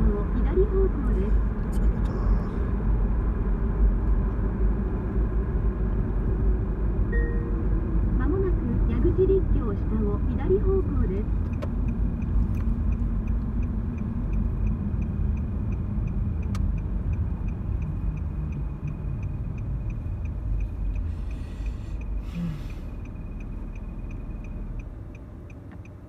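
A car engine hums and tyres roll on a road, slowing and quieting as the car comes to a stop.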